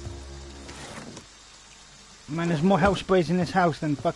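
A drawer slides open with a wooden scrape.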